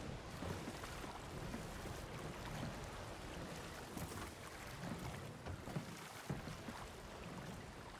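Waves splash against a small wooden boat.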